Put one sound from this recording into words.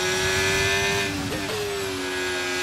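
A racing car engine drops in pitch as the driver brakes and shifts down.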